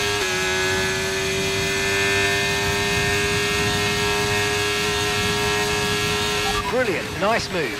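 A racing car engine screams at high, steady revs.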